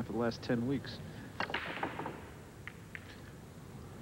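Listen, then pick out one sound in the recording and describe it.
Pool balls crack and clatter as a break shot scatters the rack.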